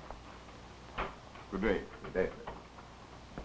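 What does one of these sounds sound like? A second man answers in a low voice.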